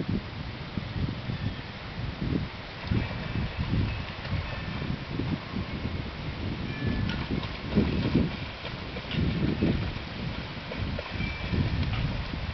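A dog splashes as it swims through water.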